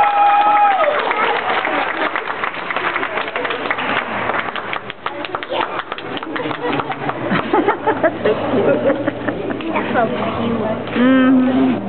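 A crowd of young people chatter and cheer.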